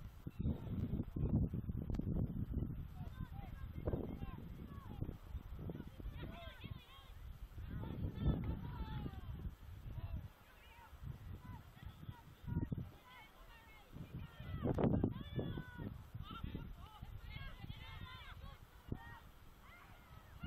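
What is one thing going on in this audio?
Young players shout and call to one another across an open field.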